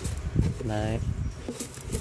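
Metal tongs scrape and rustle through loose gravel.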